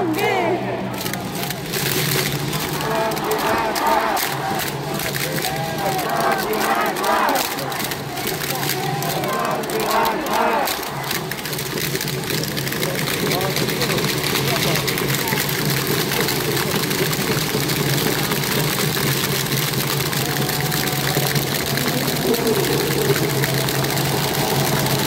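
A large crowd murmurs and cheers steadily in the background.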